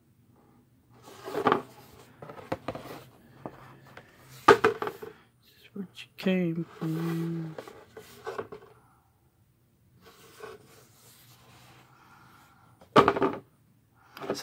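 A cardboard board rustles and knocks as hands handle it.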